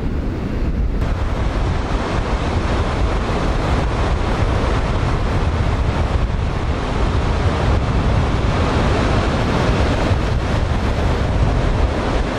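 Waves break and wash onto the shore in a steady roar.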